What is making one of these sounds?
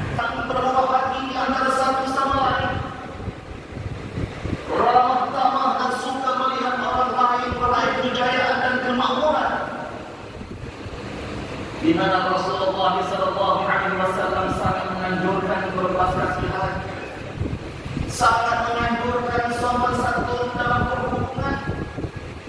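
A man chants in a long, melodic voice through a loudspeaker in a large echoing hall.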